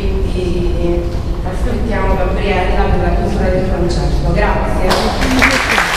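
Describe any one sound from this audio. A young woman sings into a microphone through a loudspeaker.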